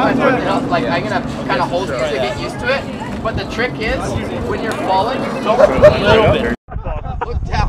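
Several men talk loudly and with animation close by, outdoors.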